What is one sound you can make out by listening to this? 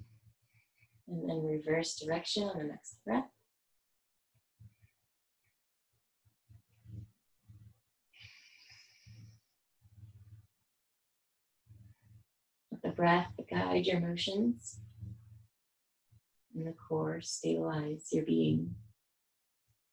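A young woman speaks calmly, giving instructions close by.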